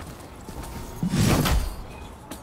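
A heavy weapon swings and strikes with a loud whoosh and thud.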